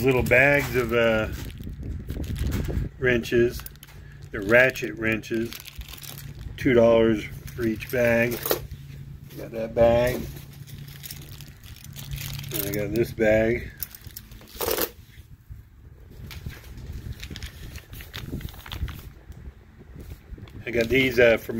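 Plastic wrapping crinkles as hands handle a bag of tools.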